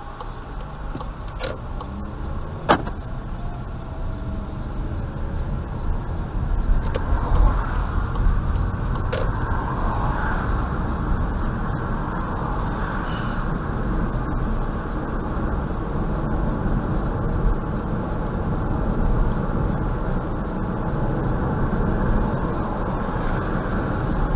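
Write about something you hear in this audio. A car's engine and tyres hum on a road, growing louder as the car speeds up.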